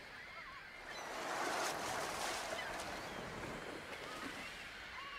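Waves wash and splash around a ship at sea.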